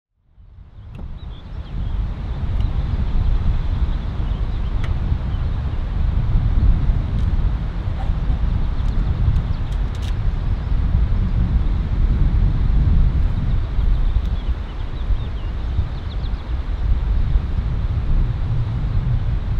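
Wind rumbles and buffets steadily outdoors.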